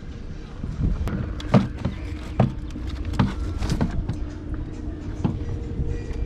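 A plastic cover rattles and clicks as a hand handles it.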